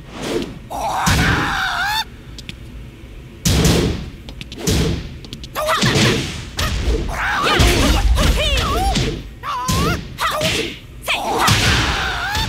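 Punches and kicks land with loud, heavy thuds.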